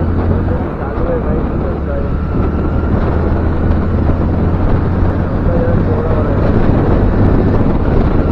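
A motorcycle engine hums steadily as the bike rides along.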